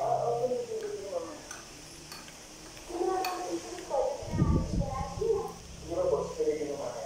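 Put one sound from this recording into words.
A young boy speaks close to the microphone.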